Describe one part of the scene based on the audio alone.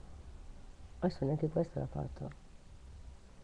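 An older woman speaks briefly and calmly, close to a microphone.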